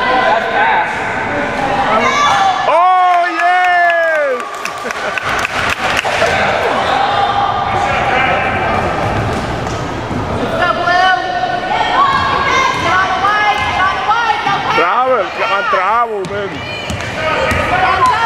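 Children shout and call out across a large echoing gym.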